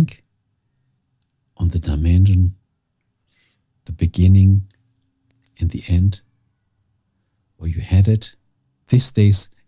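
A middle-aged man speaks calmly and deliberately into a nearby microphone, in short phrases with pauses.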